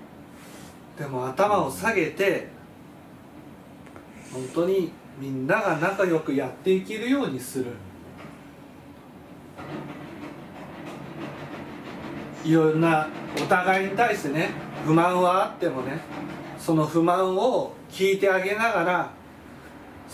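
A man speaks calmly and clearly nearby, pausing between phrases.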